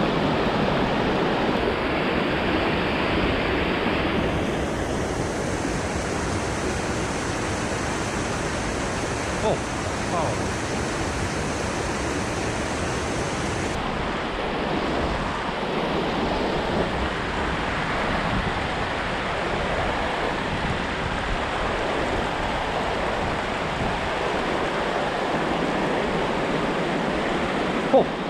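A river rushes and splashes over rocks close by.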